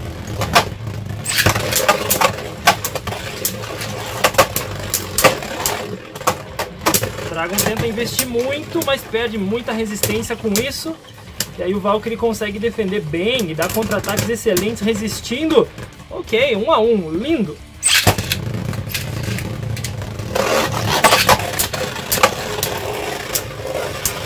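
Spinning tops clash together with sharp clacks.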